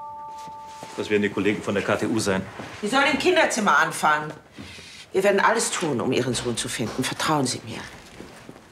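A middle-aged woman speaks urgently, close by.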